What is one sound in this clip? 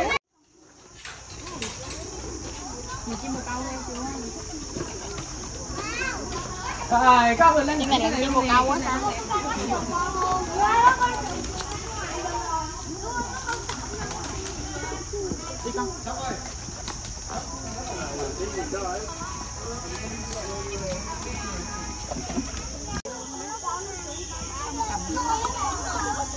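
Adults and children chatter nearby.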